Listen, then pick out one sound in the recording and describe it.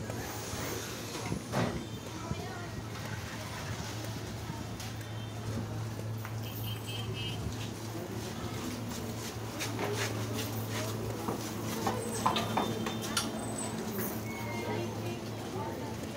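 Sandals slap on a concrete street as a person walks.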